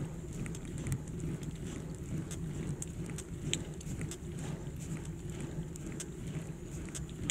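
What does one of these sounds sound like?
Wind rumbles steadily against a microphone.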